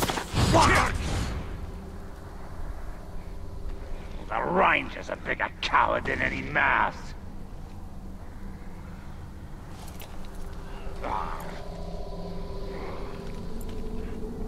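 Footsteps scuff on stone.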